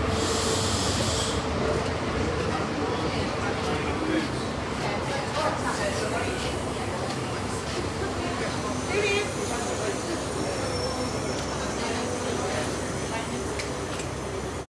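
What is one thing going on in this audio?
A crowd of people chatters nearby, echoing under a large roof.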